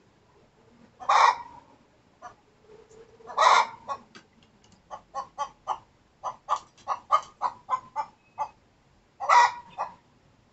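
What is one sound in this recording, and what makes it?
A hen squawks loudly a few times.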